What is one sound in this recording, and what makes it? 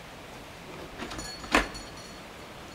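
A doorbell rings briefly.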